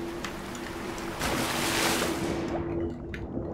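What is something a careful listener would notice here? Water splashes loudly as a body plunges into it.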